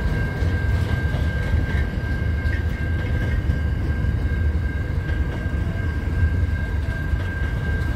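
Steel wheels squeal and clatter on the rails.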